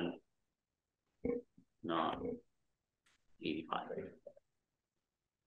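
An adult speaks quietly from a distance in a room.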